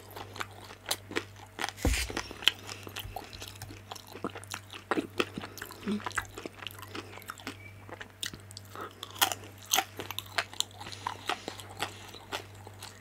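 A woman chews crisp dumplings with wet, crunchy bites close to a microphone.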